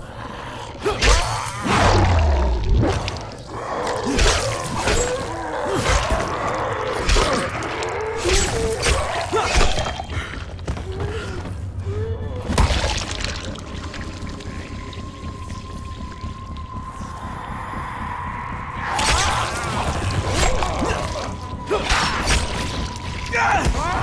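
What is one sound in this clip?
A heavy blade strikes flesh with wet, thudding blows.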